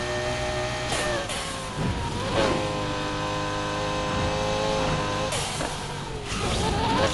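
A V10 supercar engine roars at full throttle, shifting gears.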